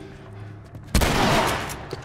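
A shotgun fires a loud blast indoors.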